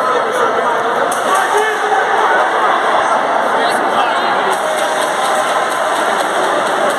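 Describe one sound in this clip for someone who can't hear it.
A crowd of spectators chatters loudly in a large echoing hall.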